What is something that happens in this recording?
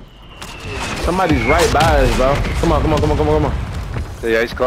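An explosion booms nearby with a deep rumble.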